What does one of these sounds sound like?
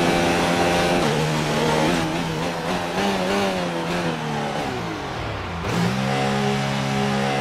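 A racing car engine drops in pitch as the car slows hard, then revs up again.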